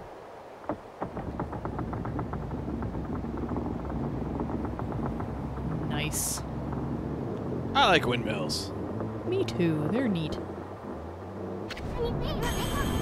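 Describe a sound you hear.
Large wooden windmill sails creak and rumble as they turn.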